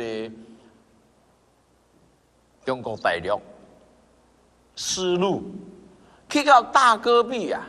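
A middle-aged man speaks animatedly into a microphone, with pauses between phrases.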